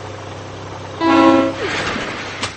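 A cartoon train whistle toots.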